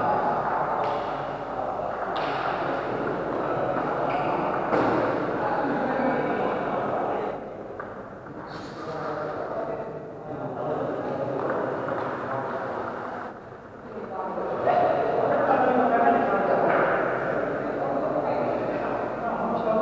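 A table tennis ball clicks back and forth on paddles and tables in a large echoing hall.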